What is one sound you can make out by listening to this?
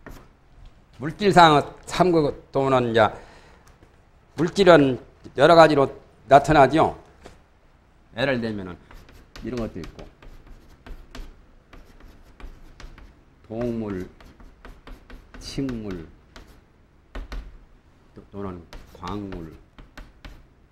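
A man speaks slowly and deliberately in a lecturing voice.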